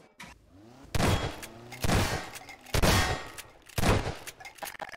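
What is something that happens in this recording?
A gun fires several shots.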